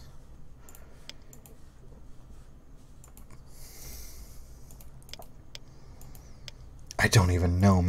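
Short soft clicks sound as menu tiles are selected.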